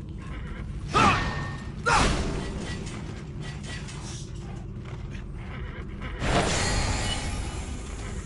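Magic spells burst with sharp whooshing blasts.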